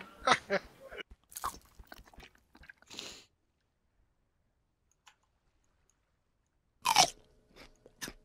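Someone chews food with soft crunching sounds.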